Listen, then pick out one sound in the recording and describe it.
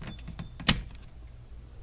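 A plastic panel clicks under a hand.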